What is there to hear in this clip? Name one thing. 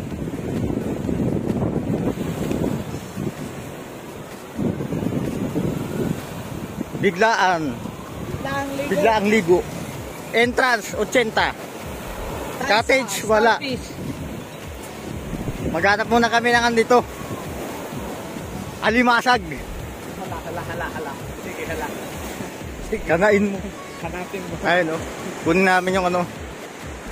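Wind blows outdoors, buffeting loudly at times.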